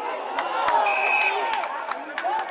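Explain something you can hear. A referee's whistle blows once, short and shrill.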